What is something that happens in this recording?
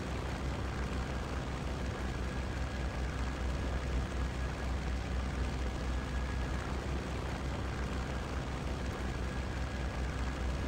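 A four-engine propeller plane drones in flight.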